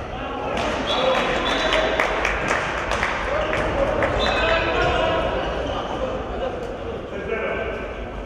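A ball thuds as players bounce it on the floor.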